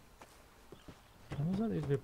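A man knocks on a wooden door.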